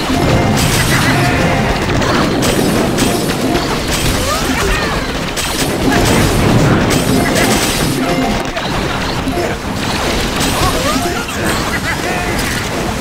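Game explosions and gunfire crackle and boom rapidly.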